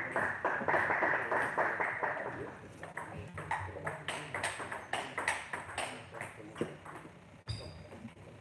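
A table tennis ball clicks rapidly back and forth off paddles and the table in an echoing hall.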